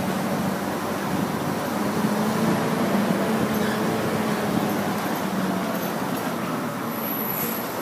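A vehicle engine hums steadily as it drives along a road.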